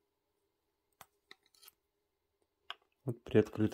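A metal tool clicks and scrapes against hard plastic.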